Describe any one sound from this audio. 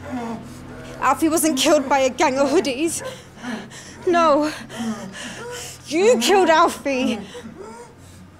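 A young woman speaks tensely nearby.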